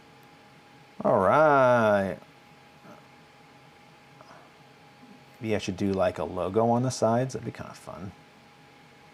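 A middle-aged man speaks calmly into a clip-on microphone, close by.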